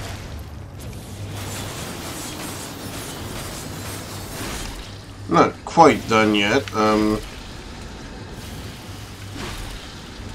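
Magic energy blasts crackle and burst.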